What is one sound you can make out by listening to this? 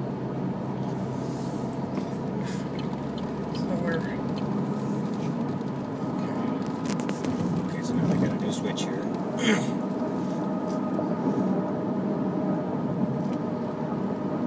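A car engine hums steadily while driving on a highway.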